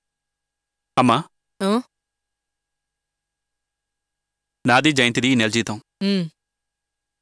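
A middle-aged woman speaks with feeling nearby.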